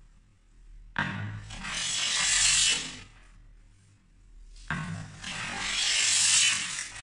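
An electric hand planer whines and shaves wood in loud passes.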